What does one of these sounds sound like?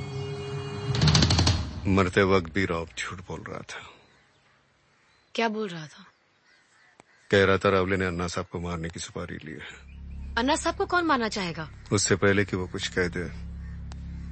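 A middle-aged man speaks in a low, firm voice.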